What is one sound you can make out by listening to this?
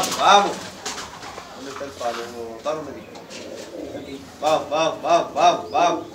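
Pigeons flap their wings briefly.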